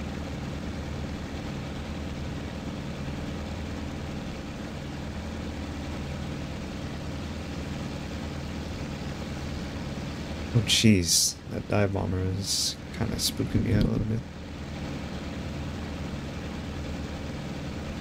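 A piston aircraft engine drones steadily in cruise.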